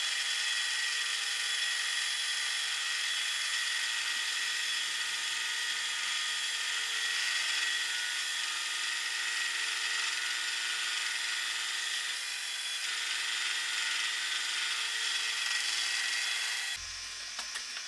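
A milling cutter grinds and whines steadily through metal.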